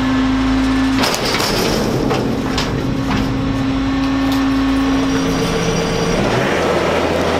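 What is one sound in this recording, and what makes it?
A garbage truck's compactor whines and groans as it crushes a load.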